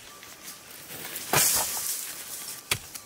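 Hands pat and press soil down.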